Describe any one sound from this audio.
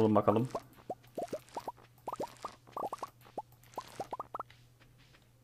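Soft popping game sounds play as crops are picked.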